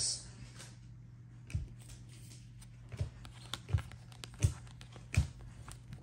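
Trading cards click and rustle as they are shuffled by hand.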